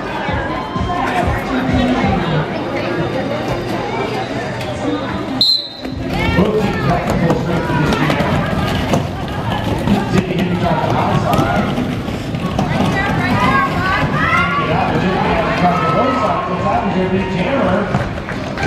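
Roller skate wheels rumble on a hard floor.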